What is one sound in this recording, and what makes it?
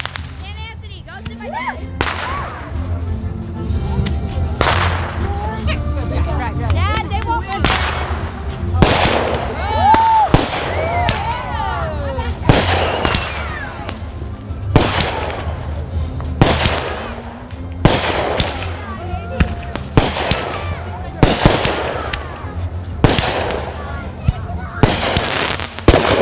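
Firework rockets whistle as they rise.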